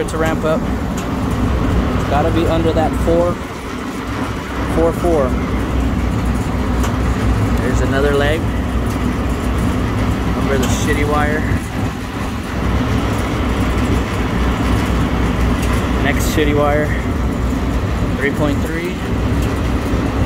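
An electric motor hums steadily nearby.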